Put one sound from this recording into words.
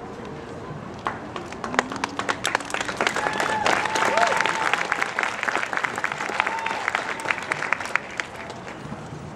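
A marching band plays outdoors.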